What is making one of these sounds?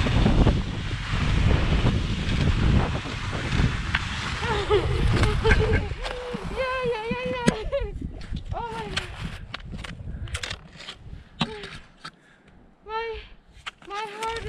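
Skis scrape and swish over snow.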